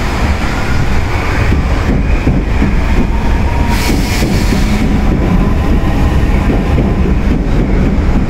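A subway train rushes past with a loud steady rumble.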